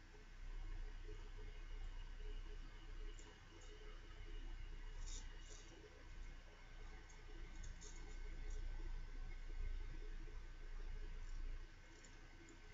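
A razor scrapes softly over stubble close by.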